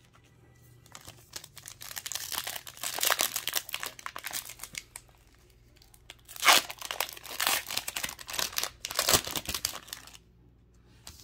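A foil wrapper crinkles and tears as it is pulled open.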